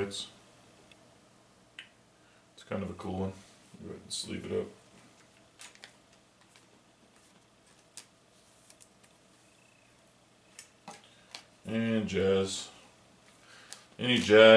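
Trading cards rustle and tap softly in hands.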